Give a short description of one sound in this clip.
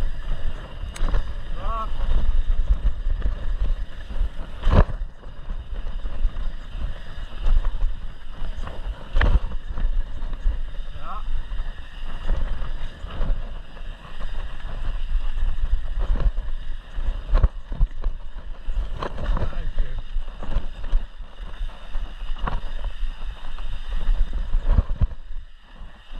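A bike's chain and frame rattle and clank over bumps.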